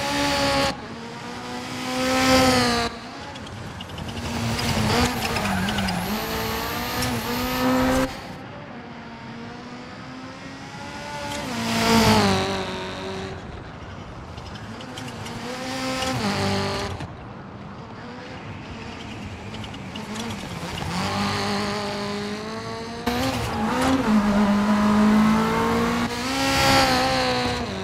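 A rally car engine roars and revs as the car speeds past.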